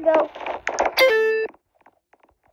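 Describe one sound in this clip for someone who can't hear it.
A short bright chime rings out as a level is completed.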